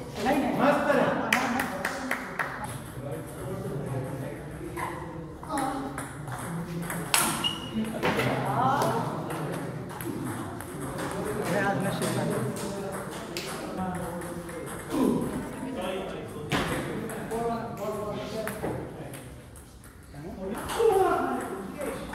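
Men talk nearby with animation in a hall that echoes.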